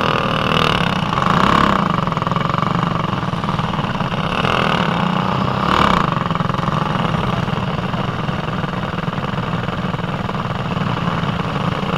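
A small kart engine buzzes loudly close by, revving up and down.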